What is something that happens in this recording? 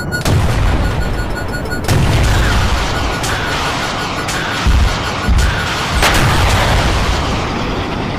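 Loud explosions boom and rumble close by.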